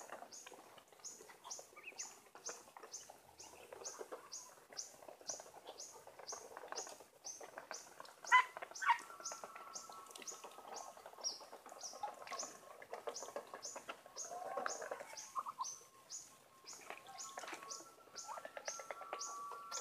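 Ducks hiss and murmur softly.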